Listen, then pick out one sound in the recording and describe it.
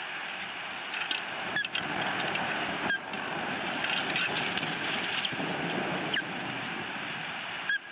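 An osprey gives short, sharp chirping calls close by.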